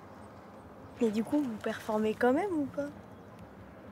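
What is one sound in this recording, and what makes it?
A young woman asks a question calmly, close by.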